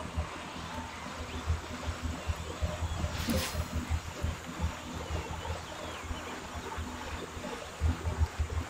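A woman breathes hard and heavily close to a microphone.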